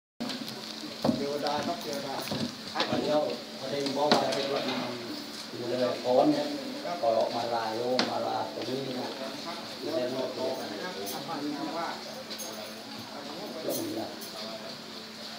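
Men and women chat close by.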